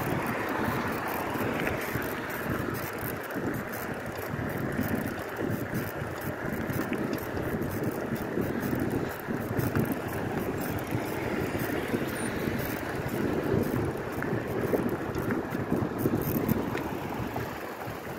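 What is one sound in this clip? Bicycle tyres roll on pavement.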